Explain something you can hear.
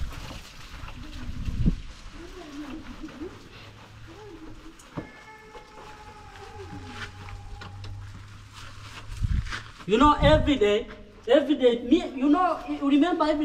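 A man scrubs a motorbike with a wet cloth.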